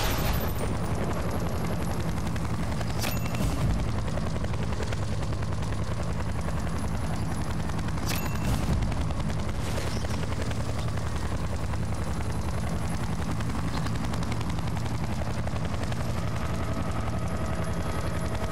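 Helicopter rotor blades thud steadily overhead.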